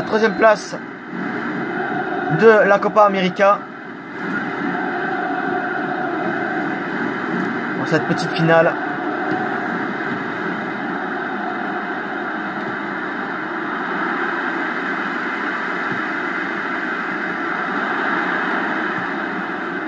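A stadium crowd roars and murmurs through a television speaker.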